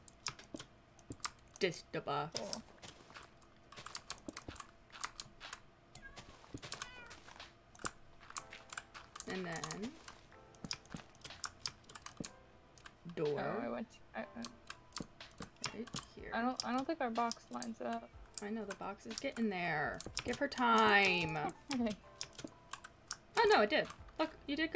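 Blocks break with quick tapping clicks in a game.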